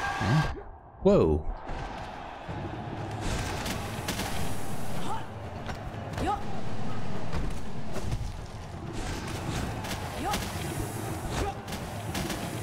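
Sharp slashing and bursting sound effects clash during a fight.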